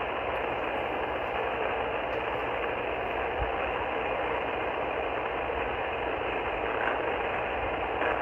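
Steady radio static hisses from a small receiver's speaker.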